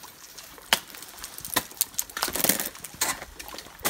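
Crampons kick and scrape into ice.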